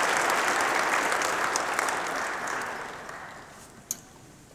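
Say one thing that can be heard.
An audience applauds in a large echoing hall and fades out.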